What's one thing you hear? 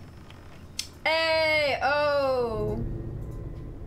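A young woman cries out loudly with a long, falling wail through a microphone.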